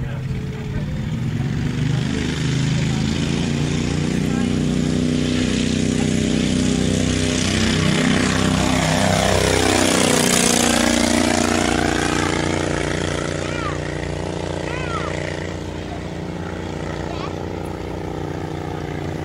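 A small propeller plane's engine drones, grows louder as it passes close overhead, then fades into the distance.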